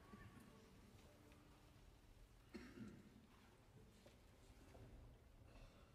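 An orchestra plays softly in a large hall.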